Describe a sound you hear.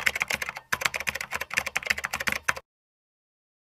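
Keyboard keys clatter quickly in a burst of typing.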